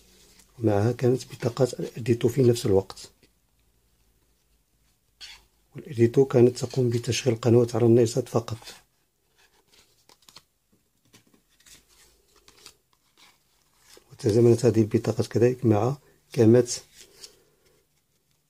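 Plastic cards click and rustle as they are handled.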